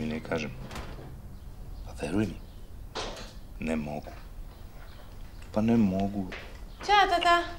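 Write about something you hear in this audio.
A woman speaks from a little distance.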